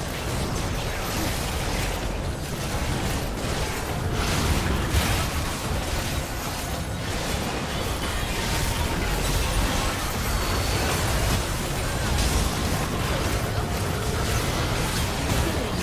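Magic blasts crackle and boom in a fierce fight.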